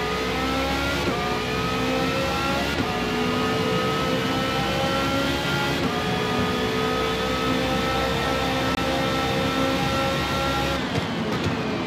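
A racing car engine roars at high revs, climbing through the gears.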